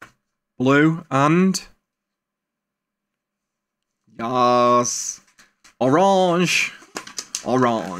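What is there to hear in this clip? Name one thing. Paper envelopes rustle as they are handled.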